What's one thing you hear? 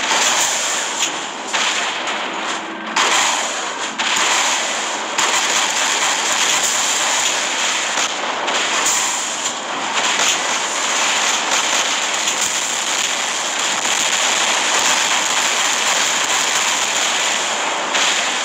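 A heavy robot walks with loud mechanical stomping footsteps.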